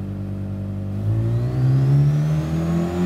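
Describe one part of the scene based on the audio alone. A racing car engine revs up, rising in pitch.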